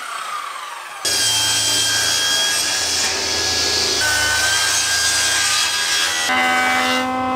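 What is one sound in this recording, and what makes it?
A table saw runs with a steady hum and cuts wood.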